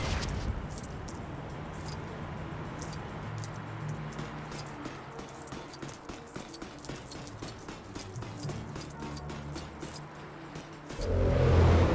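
Coins jingle and clink as they are picked up.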